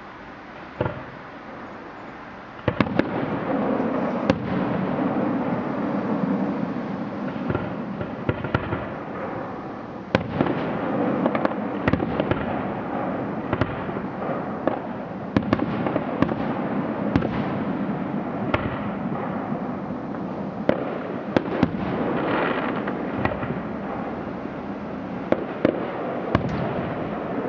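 Fireworks burst with sharp bangs, one after another.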